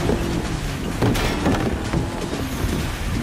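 Traffic cones crash and clatter against a car.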